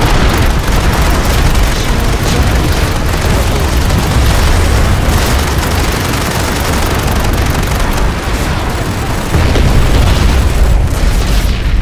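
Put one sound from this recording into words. Laser shots zap and crackle in bursts.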